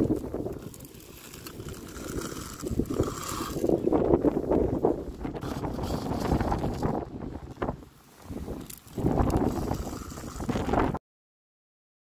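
Gravel pours and rattles into a toy rail wagon.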